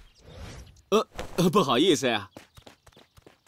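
A man speaks apologetically, close up.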